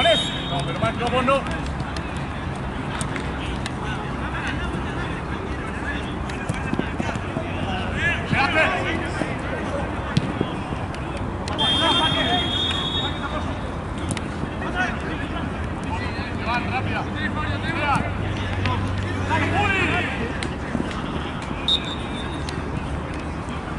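Young men shout to each other outdoors during a football game.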